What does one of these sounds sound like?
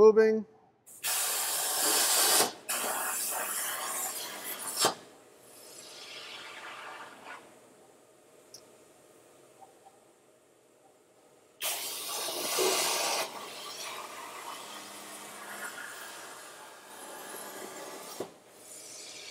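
A cutting torch hisses loudly in bursts.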